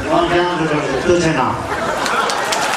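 A man speaks loudly into a microphone over a loudspeaker.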